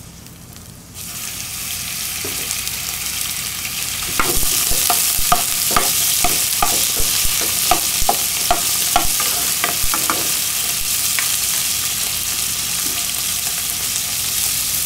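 Hot oil sizzles and crackles in a pan.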